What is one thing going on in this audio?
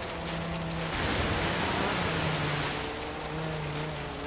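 Water splashes loudly as a car drives through it.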